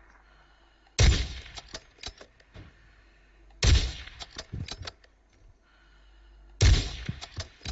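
A rifle fires loud single shots, a few seconds apart.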